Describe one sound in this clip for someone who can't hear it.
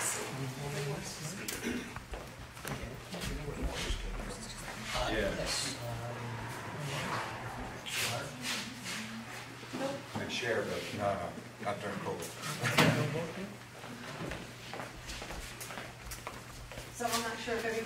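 An elderly man speaks to a room, echoing slightly.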